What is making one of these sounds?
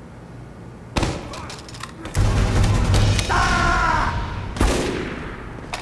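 A grenade launcher fires with loud booming blasts.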